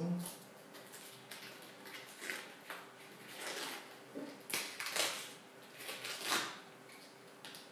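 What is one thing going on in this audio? Cabbage leaves crunch and squeak as hands pull them apart.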